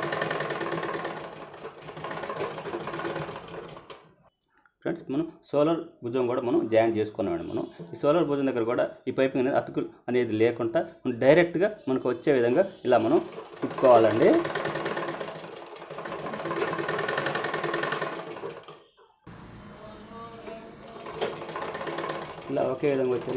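A sewing machine whirs as it stitches fabric.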